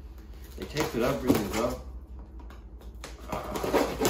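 A knife slices through packing tape.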